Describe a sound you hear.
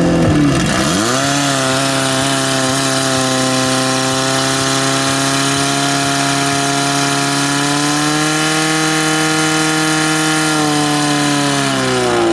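A pump engine revs up and then roars steadily.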